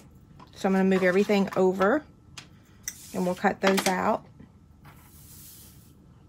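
Paper cards rustle and slide on a wooden table.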